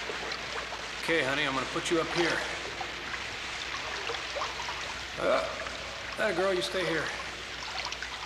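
A man speaks urgently up close.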